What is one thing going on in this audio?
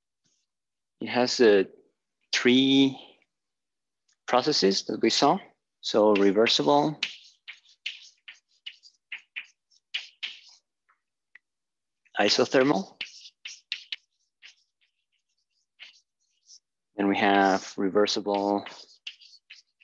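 A man lectures calmly nearby, speaking in short phrases.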